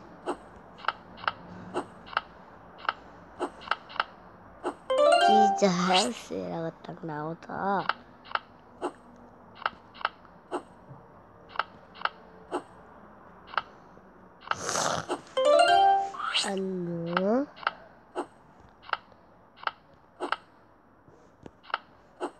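Short electronic clicks sound as tiles flip over in a memory game.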